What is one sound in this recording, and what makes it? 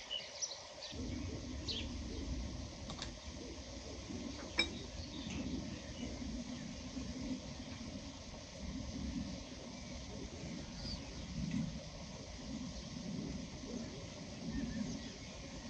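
A spoon stirs and scrapes in a large metal bowl.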